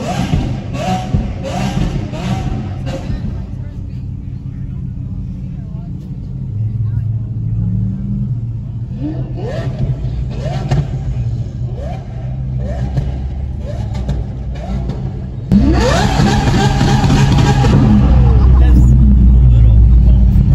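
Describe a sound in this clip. Car engines rev loudly nearby in short rising bursts.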